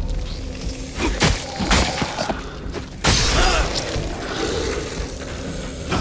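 A sword slashes and strikes with sharp metallic hits.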